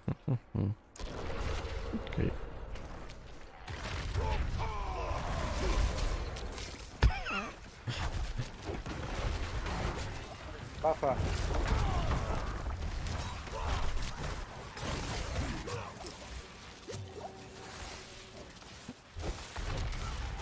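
Spells and weapon blows crash and whoosh in a fast game battle.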